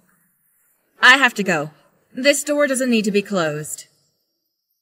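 A young woman answers briefly in a soft voice.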